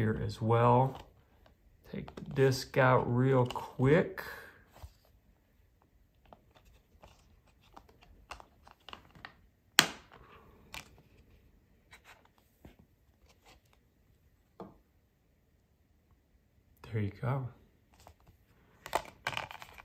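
A plastic disc case clicks and rattles as a disc is handled.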